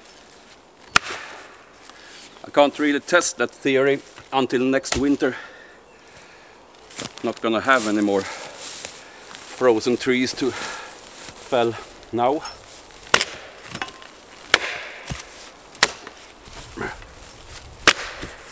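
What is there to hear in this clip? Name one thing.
Wood knocks sharply under an axe's blows.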